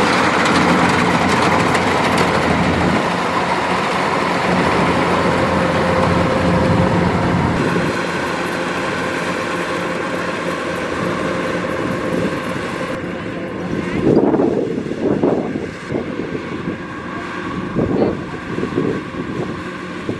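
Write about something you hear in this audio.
A combine harvester engine rumbles and whirs steadily close by.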